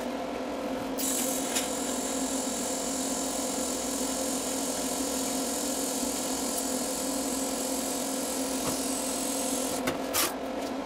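A welding arc hisses and buzzes steadily.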